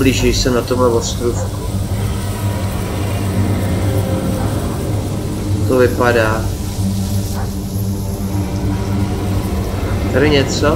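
A fire burns with a low, steady roar.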